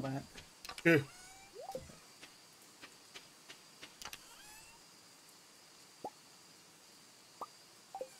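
Short game menu clicks and pops sound now and then.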